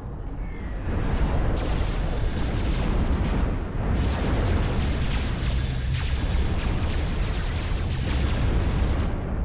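Gunfire and explosions rumble in a distant battle.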